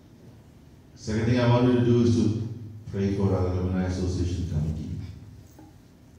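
A man speaks into a microphone, heard through a loudspeaker in an echoing room.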